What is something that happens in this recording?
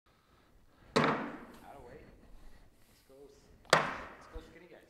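Bean bags thud onto a wooden board.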